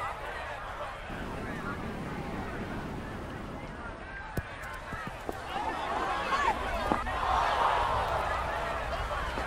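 A crowd cheers, growing louder.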